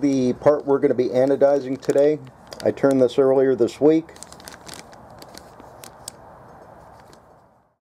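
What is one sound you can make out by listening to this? A plastic bag crinkles in hands.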